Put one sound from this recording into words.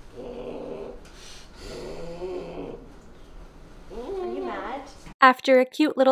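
A puppy grunts and growls softly up close.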